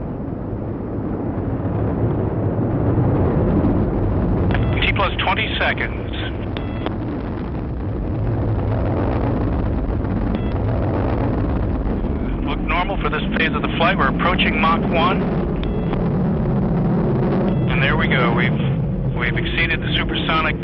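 Rocket engines roar steadily with a deep rumble.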